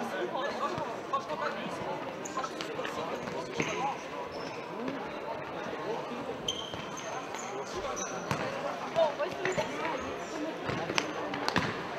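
Shoes squeak sharply on a hard indoor court.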